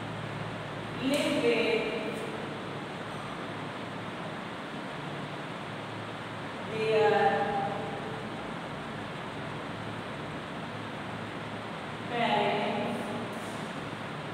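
A woman speaks aloud in short bursts with pauses in between.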